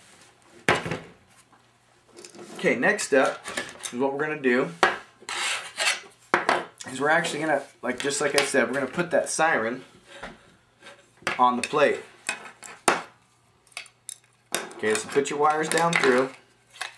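Small plastic and metal parts click and rattle against a hard tabletop.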